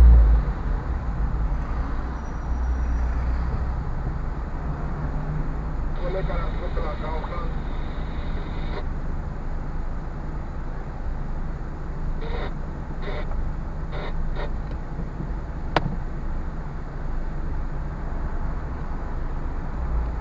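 Traffic rumbles nearby in a city street.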